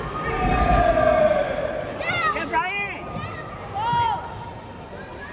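Spectators cheer and whoop loudly in a large echoing hall.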